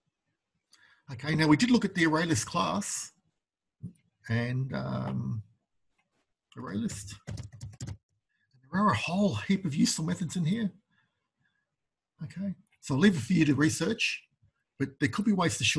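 A man speaks calmly and steadily into a close microphone.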